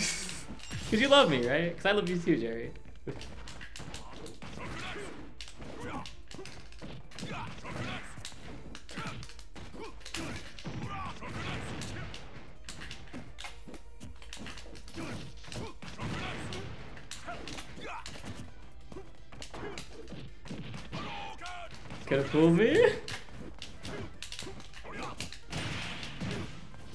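Game punches and blasts thump and crackle.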